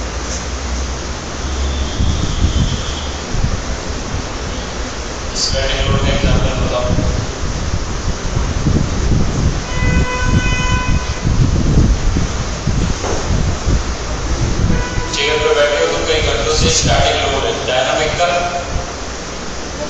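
A man lectures calmly through a close microphone.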